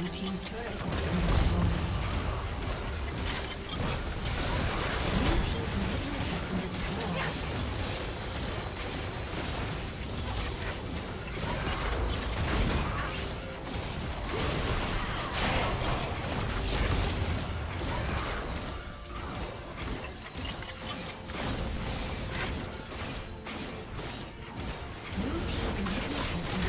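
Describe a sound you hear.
Game spell effects whoosh and crackle in a busy battle.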